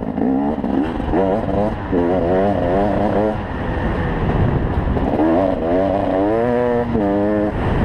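A motorbike engine roars as the bike rides over rough ground.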